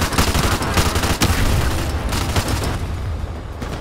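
A machine gun fires rapid bursts with loud echoing shots.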